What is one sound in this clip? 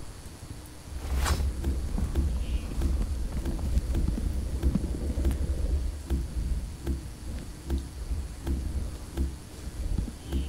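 Dirt is dug out with repeated soft, dull thuds.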